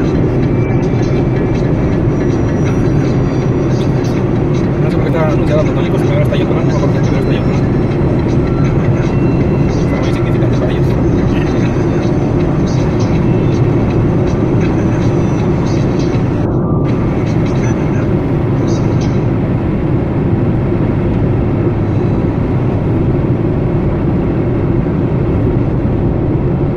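Road noise and a car's engine drone from inside a car cruising along a wet highway.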